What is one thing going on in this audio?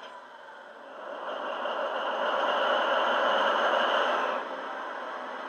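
A diesel engine revs up loudly, then settles back down.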